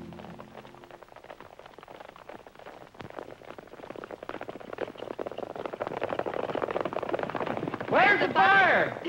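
Horses gallop over dirt with rapid hoofbeats.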